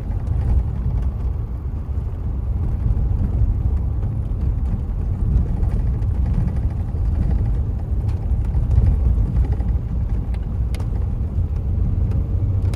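Strong wind blows and buffets outdoors in heavy gusts.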